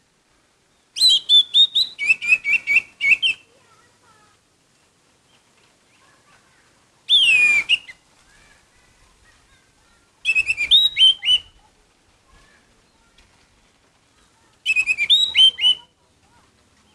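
A songbird sings loud, clear bursts of chirps and whistles close by.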